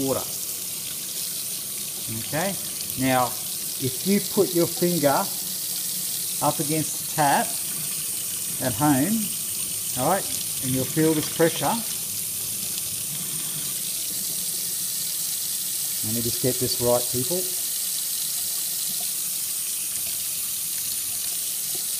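Water splashes over a hand held under a running tap.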